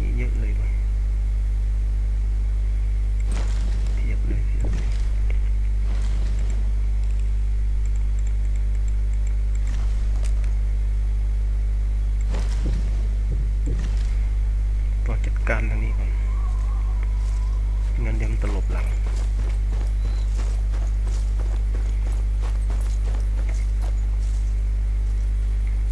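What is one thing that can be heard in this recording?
Footsteps rustle softly through dry grass.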